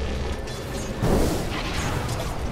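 A loud magical blast bursts out.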